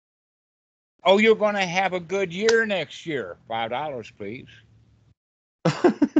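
An elderly man speaks with animation over an online call.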